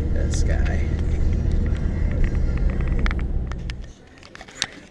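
Road noise rumbles inside a moving car.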